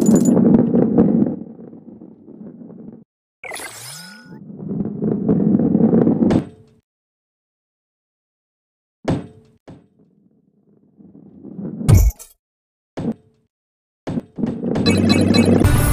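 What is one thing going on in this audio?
A heavy ball rolls and rumbles along a wooden track.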